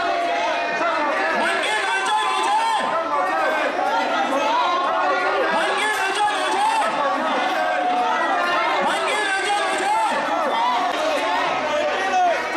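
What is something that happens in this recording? A crowd of men and women chants slogans loudly outdoors.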